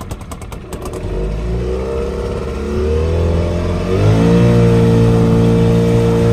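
A boat engine starts up and drones steadily.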